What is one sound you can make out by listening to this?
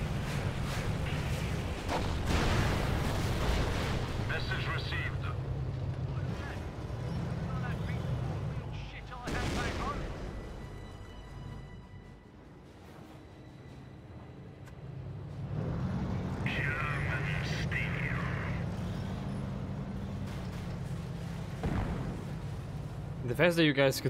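Tank engines rumble steadily.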